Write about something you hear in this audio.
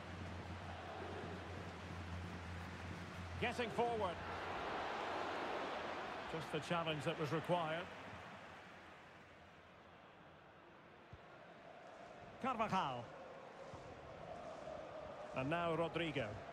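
A stadium crowd roars and murmurs steadily.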